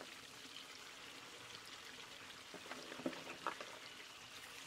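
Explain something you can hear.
Leafy greens drop into a pan with a soft rustle.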